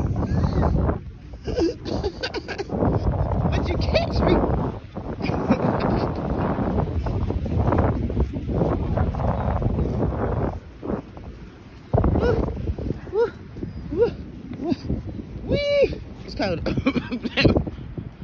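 Wind blows hard across the microphone outdoors.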